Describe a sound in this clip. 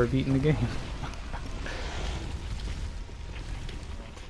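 A fire crackles softly nearby.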